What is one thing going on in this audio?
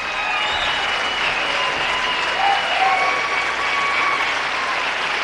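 Audience members whistle shrilly.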